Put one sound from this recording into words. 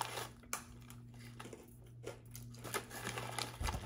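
A girl crunches on a crisp.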